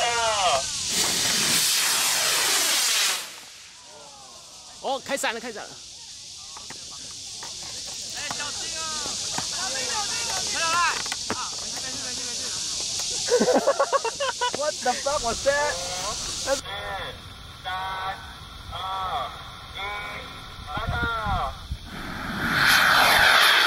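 A model rocket roars as it launches with a loud rushing hiss.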